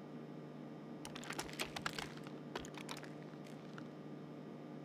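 Metal gear clicks and clatters against a door.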